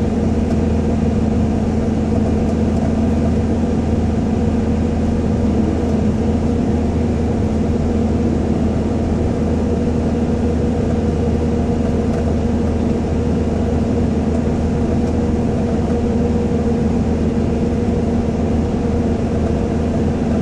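Tyres roar steadily on the road, echoing in an enclosed tunnel.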